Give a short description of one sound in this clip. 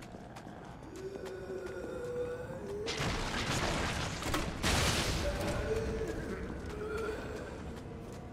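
Zombies groan and moan nearby.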